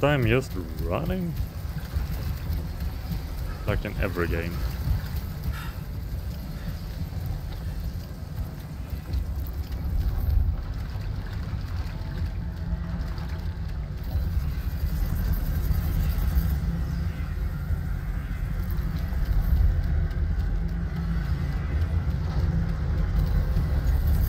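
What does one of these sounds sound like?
Rain pours steadily outdoors.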